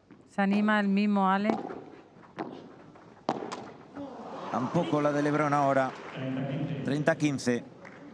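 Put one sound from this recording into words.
Padel rackets strike a ball back and forth in a rally.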